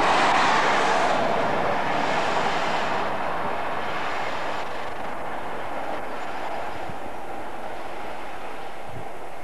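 A train rushes past close by, its roar slowly fading as it moves away.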